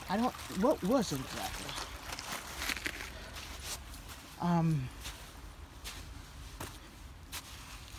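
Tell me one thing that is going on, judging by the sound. A shallow stream trickles softly over stones.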